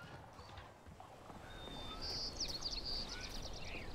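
Footsteps crunch on dirt outdoors.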